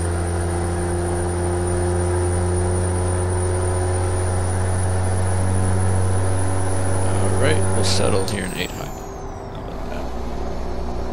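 A truck engine hums steadily, then its note drops.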